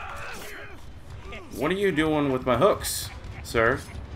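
A knife stabs into flesh with wet thuds.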